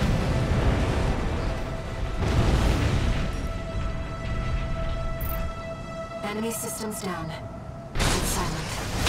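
Explosions boom and rumble loudly.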